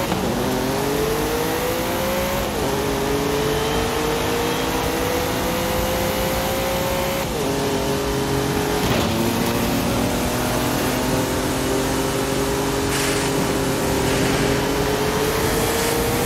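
A racing car engine roars steadily, rising in pitch and dropping sharply at each gear change.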